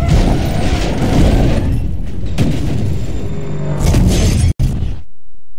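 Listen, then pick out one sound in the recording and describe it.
A sports car engine roars loudly.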